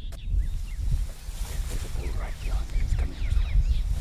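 A man whispers close by.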